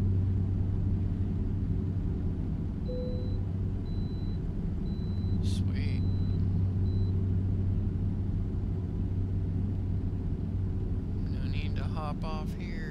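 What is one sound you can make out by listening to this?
A truck's diesel engine drones steadily.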